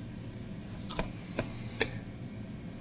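Fingers tap sharply on a metal engine cover.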